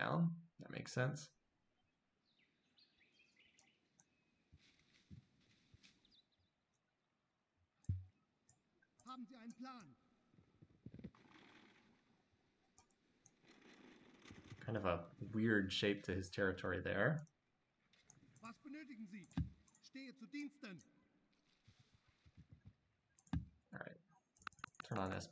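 A young man talks calmly into a microphone, heard close.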